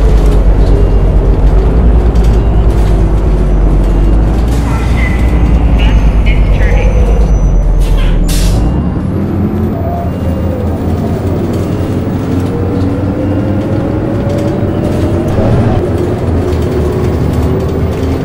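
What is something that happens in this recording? A bus engine hums and whines as it drives along.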